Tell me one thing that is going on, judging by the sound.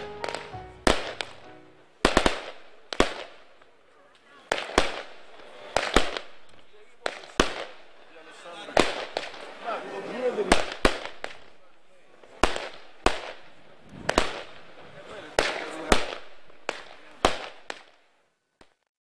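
Firecrackers bang one after another overhead, each blast echoing away.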